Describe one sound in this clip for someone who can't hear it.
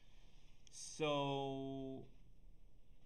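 A man makes a short steady humming sound close to a microphone.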